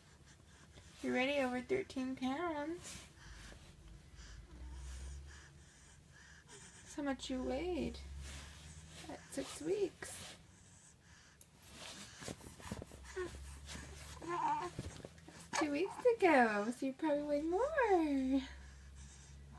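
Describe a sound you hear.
A baby coos and babbles softly close by.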